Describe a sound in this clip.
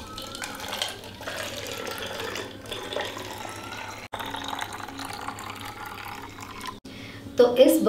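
Liquid pours from a metal bowl into a bottle.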